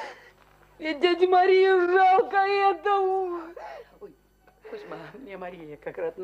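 An elderly woman speaks tearfully.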